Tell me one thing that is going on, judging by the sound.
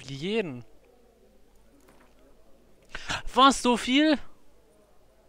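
A man speaks in a low, calm voice.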